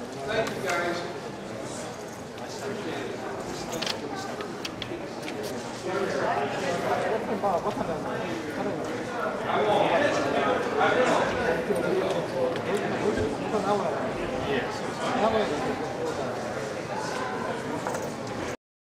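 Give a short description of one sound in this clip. Several adult men and women chat at once in a large room.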